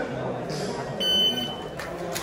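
A shot timer beeps sharply.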